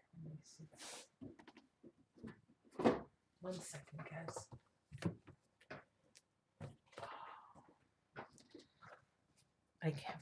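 A middle-aged woman speaks quietly and haltingly, close to the microphone.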